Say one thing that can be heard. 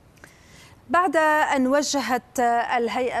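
A woman speaks clearly and steadily through a microphone.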